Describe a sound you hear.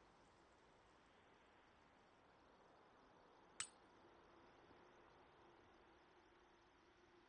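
A small fire crackles softly nearby.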